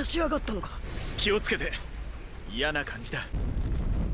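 A man speaks calmly and warns.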